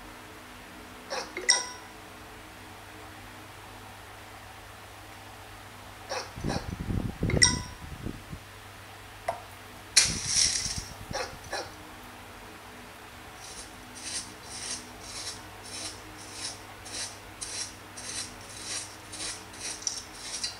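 Short electronic chimes and effects play from a tablet game.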